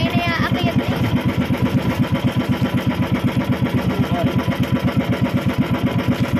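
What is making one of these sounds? A boat engine chugs steadily.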